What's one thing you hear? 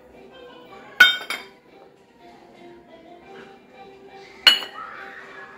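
A metal bowl clinks against a metal plate.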